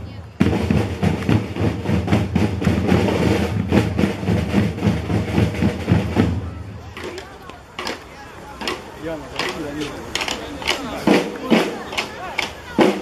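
Brass horns play a tune.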